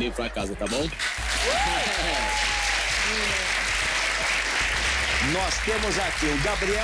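A large studio audience applauds and cheers loudly.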